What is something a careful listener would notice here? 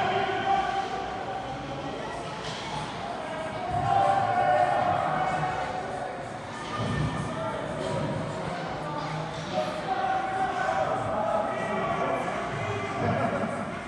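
Spectators shout and cheer in an echoing indoor rink.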